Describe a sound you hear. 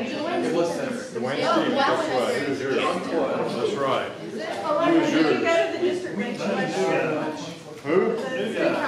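An older man speaks with animation in a room with a slight echo.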